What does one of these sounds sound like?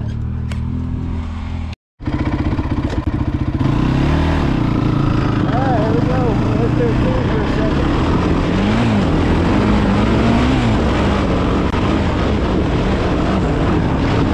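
A motorbike engine runs up close, revving up and down as it climbs.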